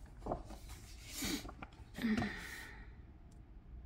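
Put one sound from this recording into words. Paper rustles and flaps close by.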